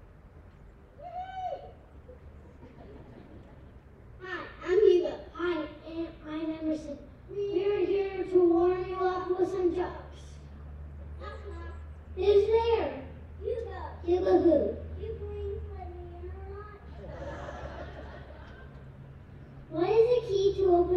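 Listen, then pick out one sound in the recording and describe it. A young boy reads out loud through a microphone and loudspeakers, outdoors.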